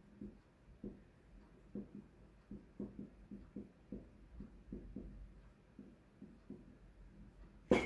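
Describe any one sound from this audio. A marker squeaks and taps as it writes on a whiteboard.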